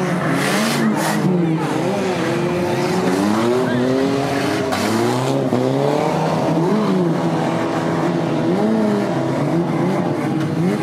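Car engines rev and roar up and down close by.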